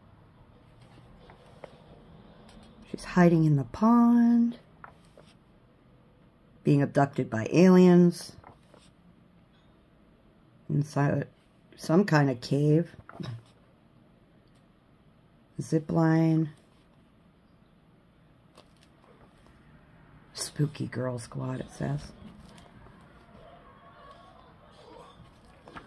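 Paper pages rustle as they are turned one by one.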